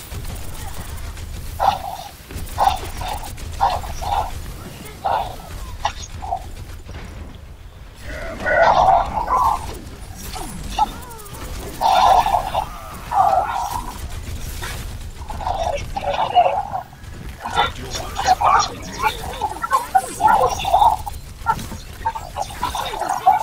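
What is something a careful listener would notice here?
Gunshots fire in quick bursts in a video game.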